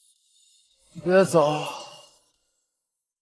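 A young man speaks briefly in a low voice close by.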